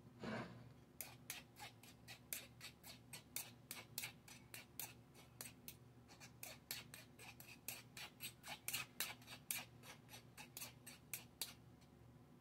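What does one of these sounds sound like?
A metal spoon scrapes and taps against a metal strainer in quick, repeated strokes.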